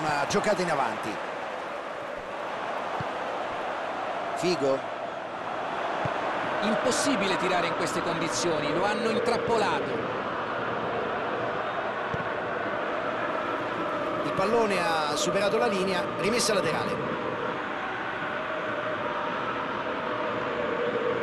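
A stadium crowd roars and chants throughout.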